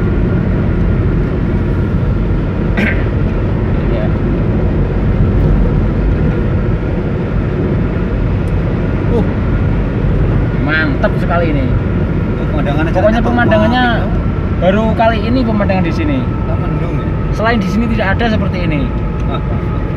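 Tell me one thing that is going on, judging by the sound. A car hums and rumbles steadily as it drives along a highway.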